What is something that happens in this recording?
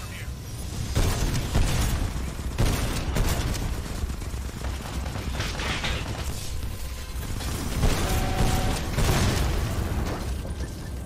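Heavy gunfire pounds in rapid bursts.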